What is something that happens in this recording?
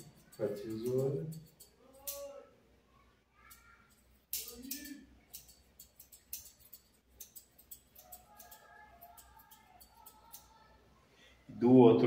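Scissors snip hair with quick, light clicks.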